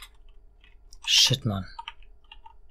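A monster lets out a loud, deep roar that drops in pitch.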